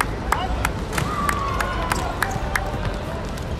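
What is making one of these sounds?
Young men shout to each other across an outdoor court.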